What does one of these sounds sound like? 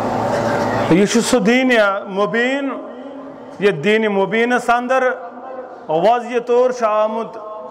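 A man chants in a melodic, wavering voice through loudspeakers.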